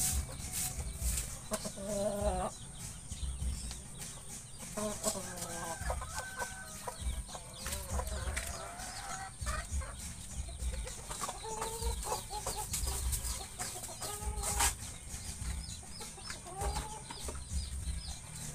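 Chickens cluck and squawk nearby.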